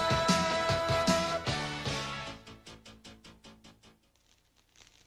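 Music plays with a bright melody and fades out.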